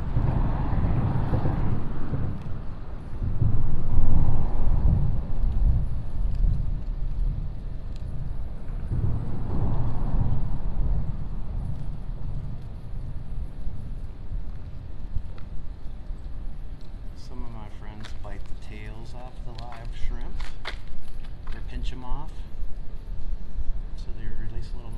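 Wind gusts strongly across the microphone outdoors.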